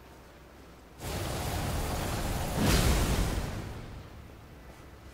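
A fiery blast roars and fades.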